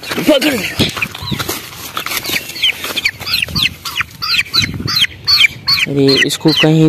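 A bird peeps repeatedly in short, high, falling chirps.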